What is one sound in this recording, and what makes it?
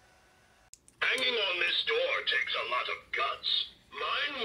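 A talking Halloween prop cackles and growls loudly through a small tinny speaker.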